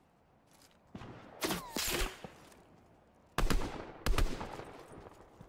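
A rifle fires several loud shots.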